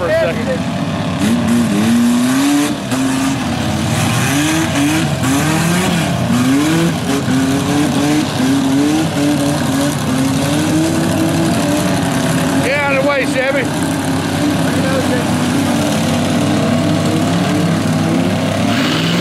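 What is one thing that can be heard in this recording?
A big truck engine roars and revs hard.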